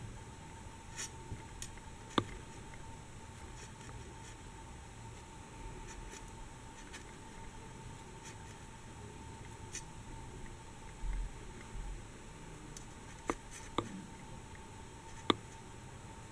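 A metal crochet hook clicks faintly against thread.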